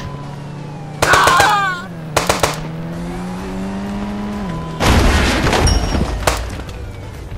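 A rifle fires loud bursts of gunshots.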